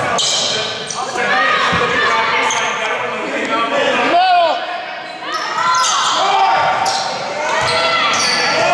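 Spectators murmur and cheer from the sidelines.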